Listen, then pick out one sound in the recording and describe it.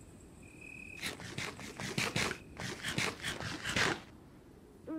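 Crunchy chewing sounds come in quick bursts.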